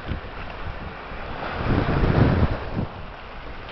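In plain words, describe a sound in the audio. A plastic spade scrapes in wet sand.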